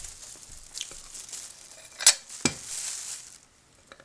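A knife scrapes and clicks against a ceramic pot.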